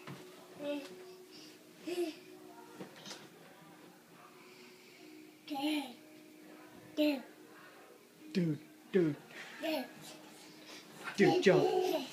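A toddler babbles and squeals with delight.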